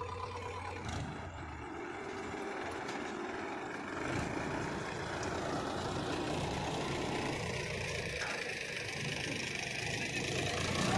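A tractor engine roars and strains under heavy load.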